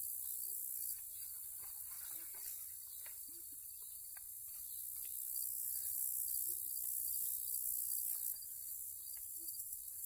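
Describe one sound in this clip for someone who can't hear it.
Small clicks and taps come from a handheld device being handled.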